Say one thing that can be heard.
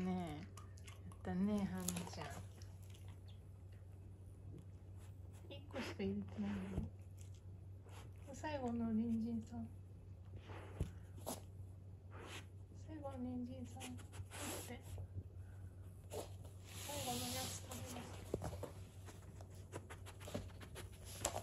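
A dog sniffs and snuffles close by.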